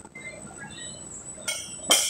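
A loaded barbell clanks as its plates shift on the floor.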